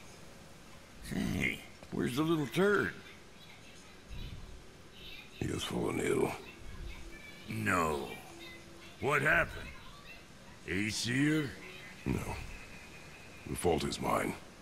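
A man speaks in a deep, low voice, calmly and close by.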